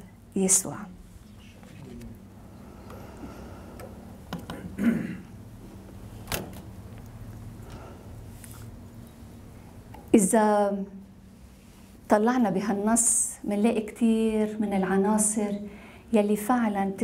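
A woman speaks into a microphone, heard over a loudspeaker in a room.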